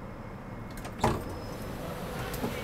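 A train door thumps and slides open.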